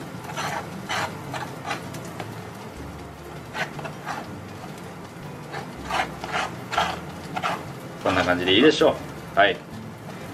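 A knife scrapes as it spreads a soft topping on toasted bread.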